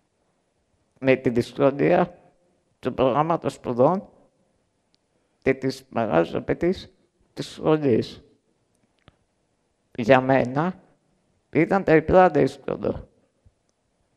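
A young man speaks slowly through a microphone in short phrases with pauses.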